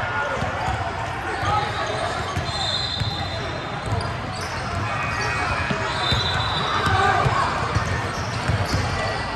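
A crowd of people chatters and calls out, echoing around a large hall.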